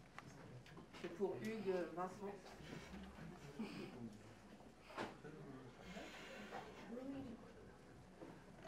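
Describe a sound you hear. A saxophone plays free jazz phrases.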